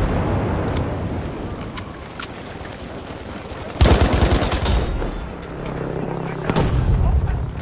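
A rifle fires sharp, loud shots.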